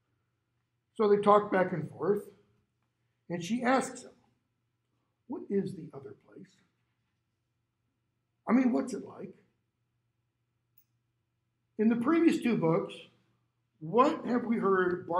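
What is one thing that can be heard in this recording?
A middle-aged man speaks calmly in short phrases through a clip-on microphone, with pauses between them.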